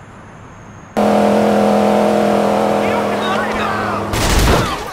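A car engine drones steadily as a car drives fast.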